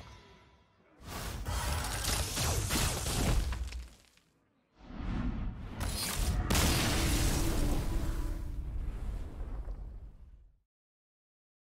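Magical chimes and explosions ring out during card effects.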